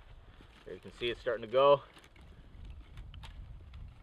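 Dry grass rustles and crackles as it is handled.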